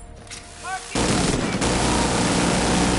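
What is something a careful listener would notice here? A heavy mounted gun fires in a fast, roaring stream.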